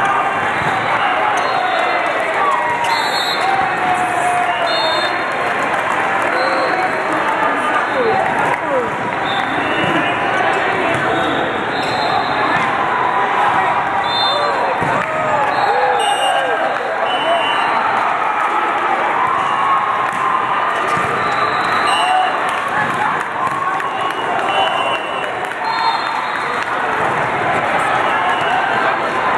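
A crowd of men talks and shouts in a large echoing hall.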